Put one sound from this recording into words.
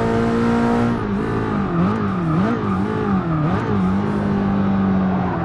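A racing car engine slows with quick throttle blips while braking.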